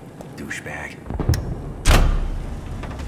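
A button clicks sharply.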